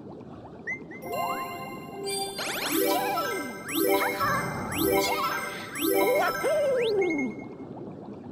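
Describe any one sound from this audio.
Bright chiming tones ring out in quick bursts.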